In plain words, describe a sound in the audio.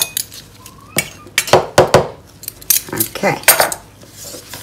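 A spoon scrapes and clinks inside a plastic jug.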